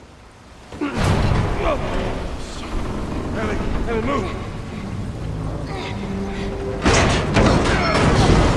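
Water rushes and splashes loudly nearby.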